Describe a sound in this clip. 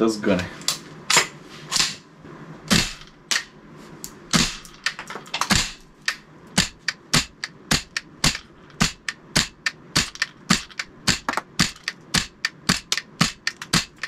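A rifle fires sharp single shots again and again, faster toward the end.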